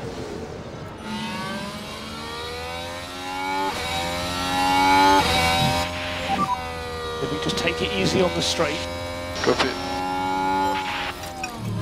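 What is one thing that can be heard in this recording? A racing car engine roars at high speed, its pitch rising and falling as it shifts gears.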